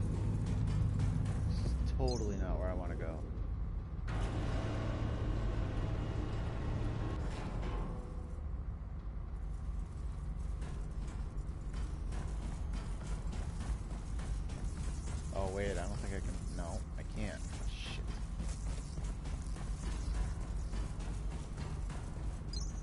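Heavy metal footsteps clank on a metal floor.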